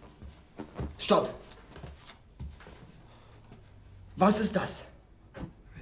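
A young man shouts angrily.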